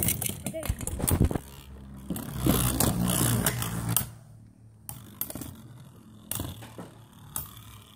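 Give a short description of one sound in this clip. Spinning tops whir in a plastic bowl.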